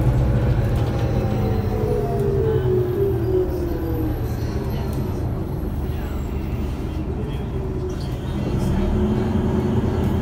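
A bus engine rumbles steadily while the bus drives.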